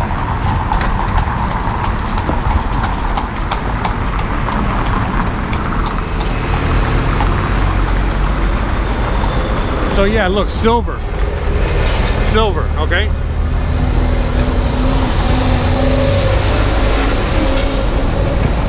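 Car traffic rumbles along a street outdoors.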